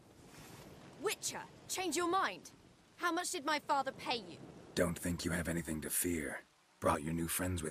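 A man speaks with a low, gravelly voice.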